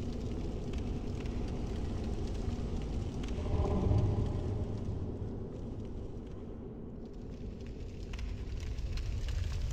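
Footsteps run across stone, echoing faintly.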